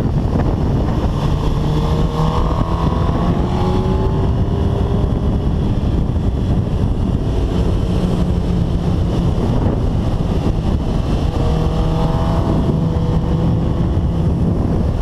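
A motorcycle engine revs up and down as it shifts gears.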